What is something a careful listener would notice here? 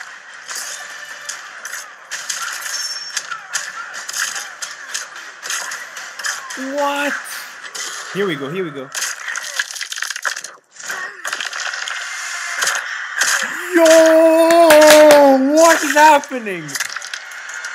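Loud trailer music and fight sound effects play through speakers.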